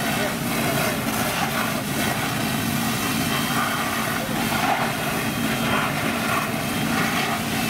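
Water from a fire hose sprays and splashes loudly.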